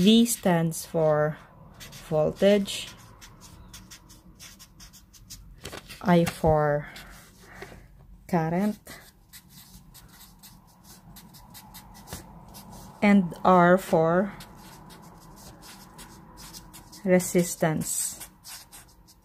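A felt marker squeaks and scratches across paper.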